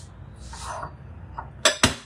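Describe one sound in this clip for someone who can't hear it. Objects clatter on a countertop.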